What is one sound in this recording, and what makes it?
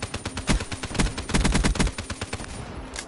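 A gun fires rapid bursts of shots.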